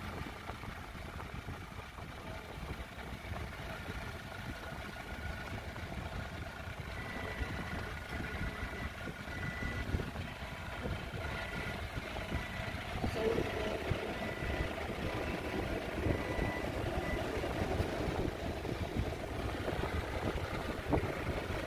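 A forklift engine hums steadily as the forklift drives slowly.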